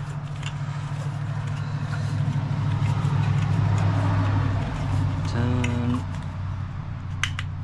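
A hand taps and clicks on a metal fitting.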